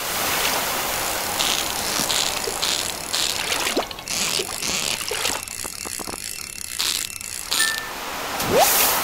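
A fishing reel clicks and whirs as a fish is reeled in.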